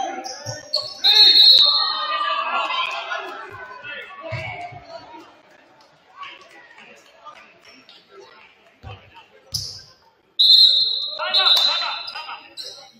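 A referee blows a shrill whistle.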